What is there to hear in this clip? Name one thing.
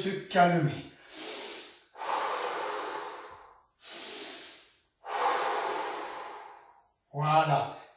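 A man breathes out loudly in long, slow breaths.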